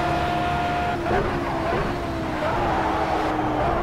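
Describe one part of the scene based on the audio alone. A racing car engine drops in pitch as the car brakes hard.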